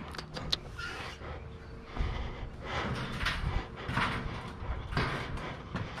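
A metal trailer ramp clanks and rattles as it is lowered.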